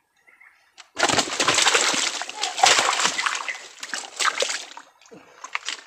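Water splashes and churns as a fish thrashes at close range.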